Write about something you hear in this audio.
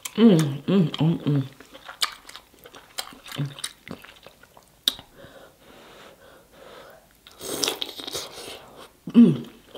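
Sauce squelches as fingers dig into food.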